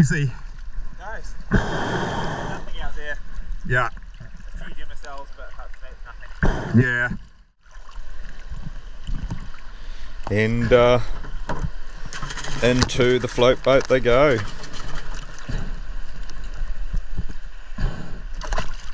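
Water sloshes and splashes close by.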